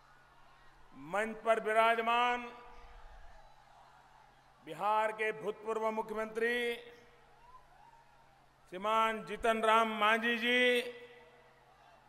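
A man speaks forcefully in short bursts through a loudspeaker, echoing across an open ground.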